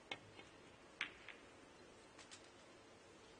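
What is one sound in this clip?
Snooker balls knock together.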